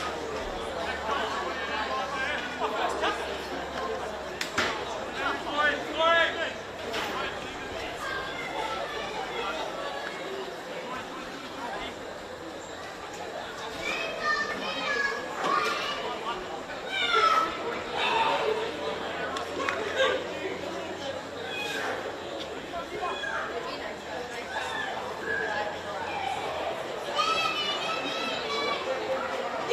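Football players shout to each other across an open field outdoors.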